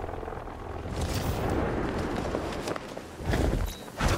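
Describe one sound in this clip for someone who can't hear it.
Wind rushes past loudly while gliding through the air.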